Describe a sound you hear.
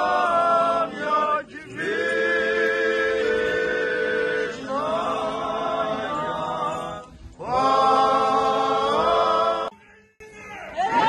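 A large crowd sings together in long held notes outdoors.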